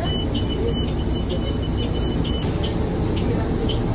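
A bus door thuds shut.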